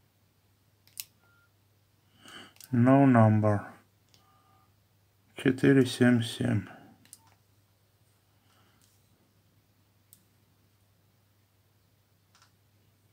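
Phone keys click as buttons are pressed.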